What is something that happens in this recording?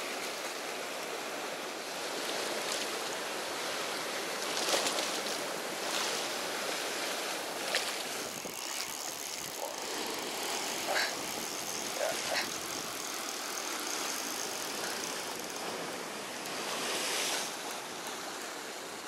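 Water splashes and churns in a boat's wake.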